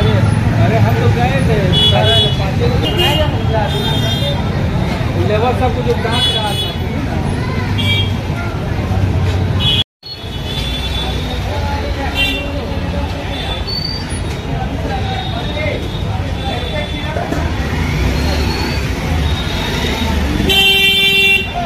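A crowd of men and women chatter on a busy street.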